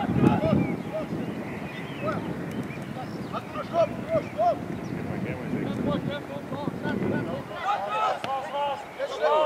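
Teenage boys call out to each other outdoors.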